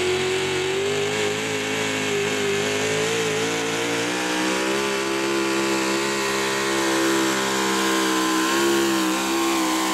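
A pickup truck's engine roars loudly at high revs, steady with slight wavering in pitch.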